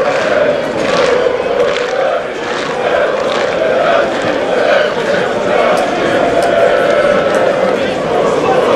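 Footballers call out to each other across an outdoor pitch.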